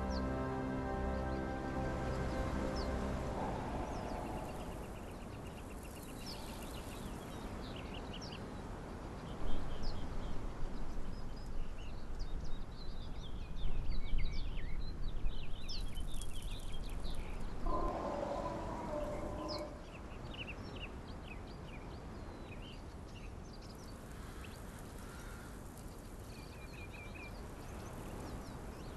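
Wind blows steadily over open sand.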